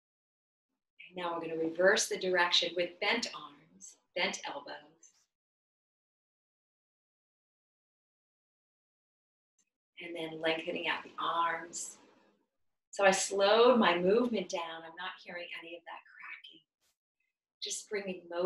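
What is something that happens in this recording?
A woman speaks calmly and clearly close by, in pauses.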